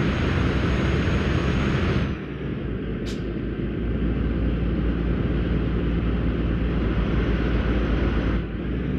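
Tyres roll and hum on a road.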